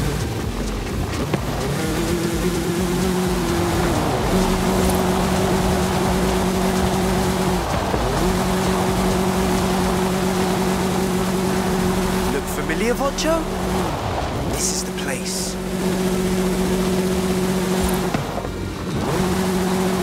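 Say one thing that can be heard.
A small car engine hums steadily.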